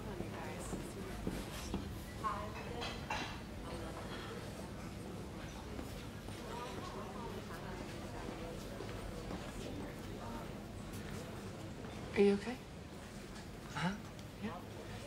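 Diners chatter softly in the background.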